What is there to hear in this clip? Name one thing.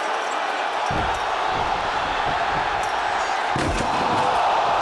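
Heavy thuds sound as bodies hit a wrestling mat.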